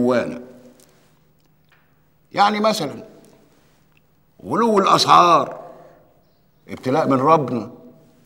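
An older man preaches loudly in bursts, his voice echoing in a large room.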